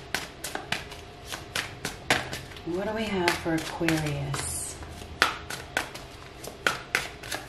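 Playing cards riffle and snap as they are shuffled by hand.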